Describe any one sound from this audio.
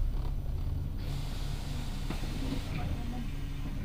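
A lorry rushes past close by.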